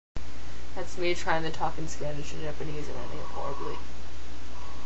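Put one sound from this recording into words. A young woman talks with animation, close to the microphone.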